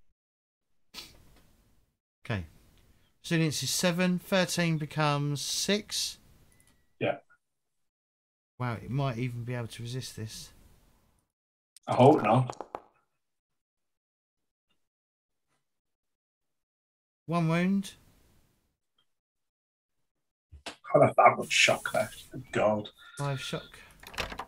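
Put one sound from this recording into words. Men talk over an online call, taking turns in short bursts.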